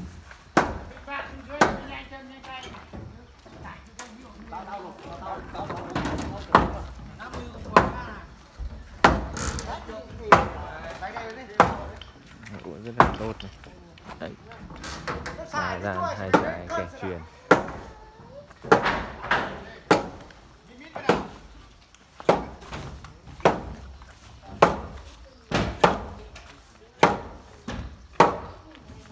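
Wooden beams knock sharply as workers hammer on a timber frame.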